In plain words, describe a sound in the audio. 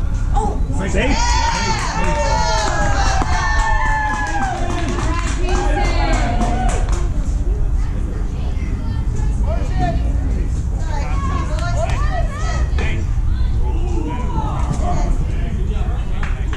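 Young children shout and cheer loudly nearby.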